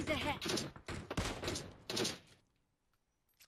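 A rifle fires a loud, sharp shot that echoes away.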